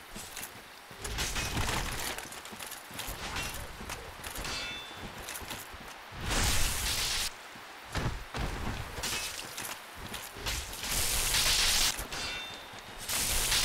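Armour clanks and blows land in a fight.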